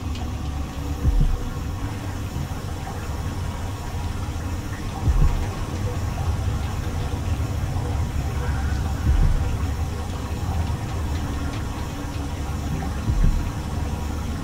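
A heavy mechanism thuds deeply every few seconds.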